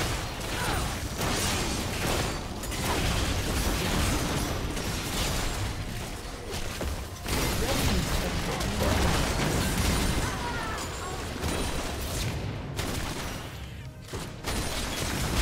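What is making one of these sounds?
Video game spell effects crackle and burst during a fight.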